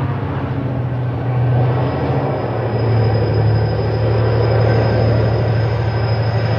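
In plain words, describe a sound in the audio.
A diesel locomotive engine rumbles steadily in the distance.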